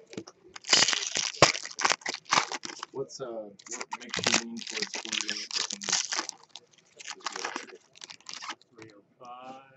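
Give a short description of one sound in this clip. Foil wrappers crinkle and tear close by.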